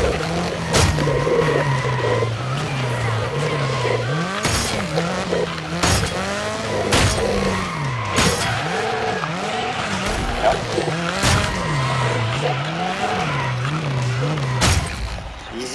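A car smashes loudly through objects.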